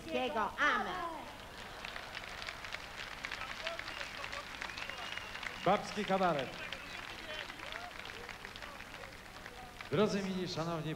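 An audience claps and cheers.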